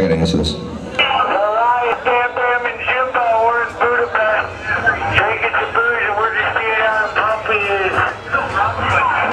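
A man sings through loudspeakers over the band.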